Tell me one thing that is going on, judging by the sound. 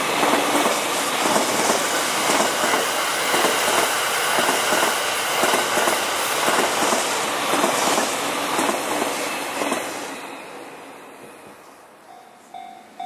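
A train rumbles past close by, its wheels clattering over the rails, then fades away.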